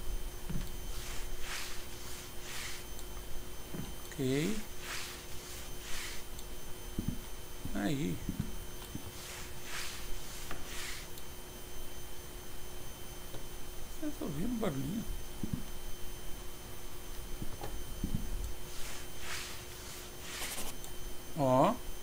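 A mop swishes across a floor in quick strokes.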